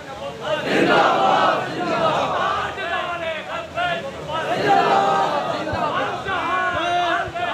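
A man speaks with passion through a loudspeaker.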